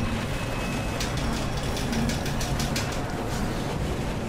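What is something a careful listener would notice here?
Water splashes and churns.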